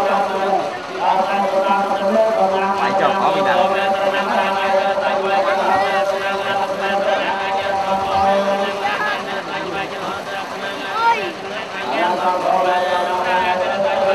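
A group of men chant together in steady, droning voices.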